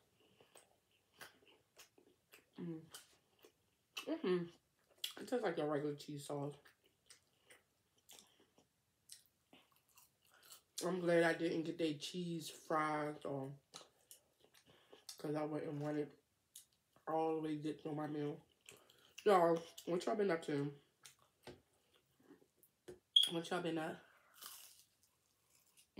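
Food crunches and chews close to a microphone.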